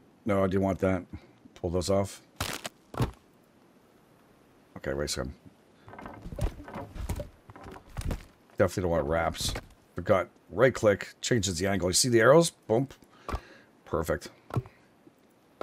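Heavy wooden logs knock down into place.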